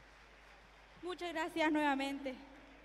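A singer's voice rings out through loudspeakers in a large hall.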